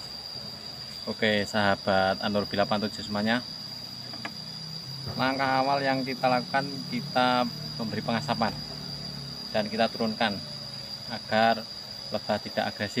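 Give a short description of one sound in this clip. A man speaks calmly close to the microphone.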